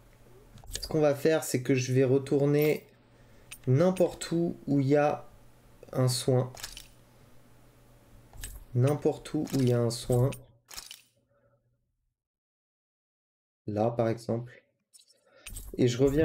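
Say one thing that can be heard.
A man talks calmly and casually into a close microphone.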